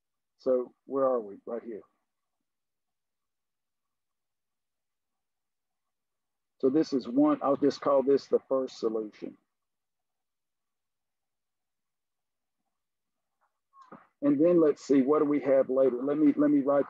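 An elderly man explains calmly over a microphone, with pauses.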